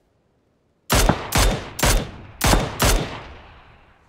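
Rifle shots ring out in quick succession, echoing across open ground.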